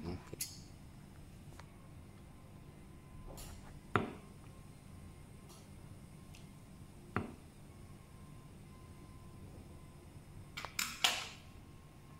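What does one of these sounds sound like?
Metal parts of a clamp click and knock as hands set it.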